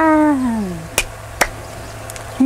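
A young woman claps her hands together.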